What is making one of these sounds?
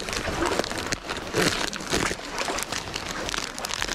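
A plastic packet crinkles and rustles close by.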